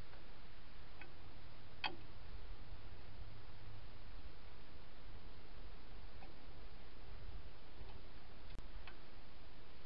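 A metal wrench clinks and clicks against a wheel hub.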